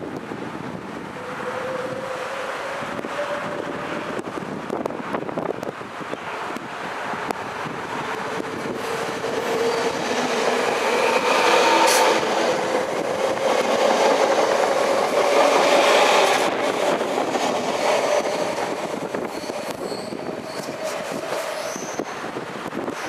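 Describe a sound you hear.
Electric train motors whine, rising and falling in pitch.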